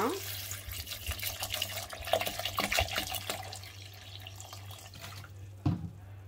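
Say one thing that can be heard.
Water pours and splashes into a jug.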